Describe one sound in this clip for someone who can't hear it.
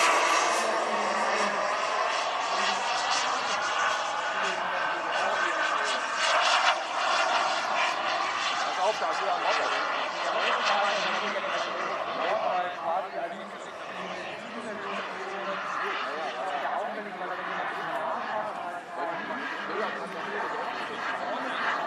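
A model jet's turbine whines loudly overhead, slowly fading as it flies away.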